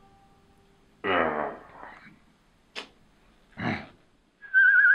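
A man groans and retches close by.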